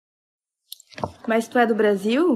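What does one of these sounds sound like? A young woman speaks close to the microphone.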